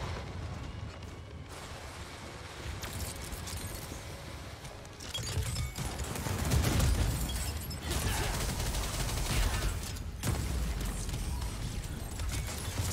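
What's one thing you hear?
Spell effects crackle and boom during a game battle.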